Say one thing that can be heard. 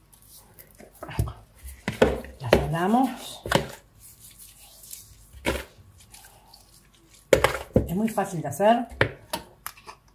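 Hands squelch and rub raw chicken in a plastic bowl.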